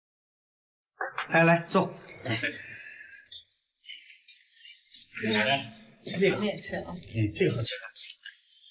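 A middle-aged woman speaks calmly to others at a table.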